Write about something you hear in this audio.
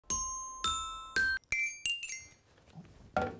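Bright chime notes ring out one after another and fade.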